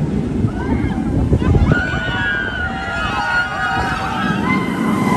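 A roller coaster train roars and rattles along its track.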